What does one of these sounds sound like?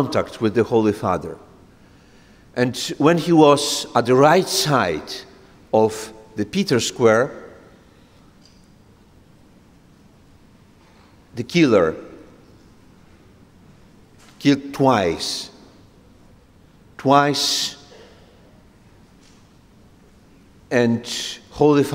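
A middle-aged man speaks forcefully into a microphone, in bursts with long pauses.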